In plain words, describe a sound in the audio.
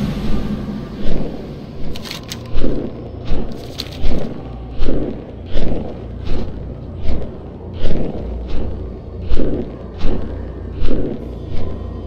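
Large wings beat with a steady whooshing rhythm.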